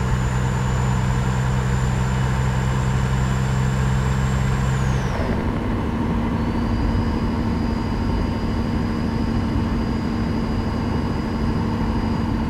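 A heavy truck engine drones steadily, dropping in pitch once as it shifts gear.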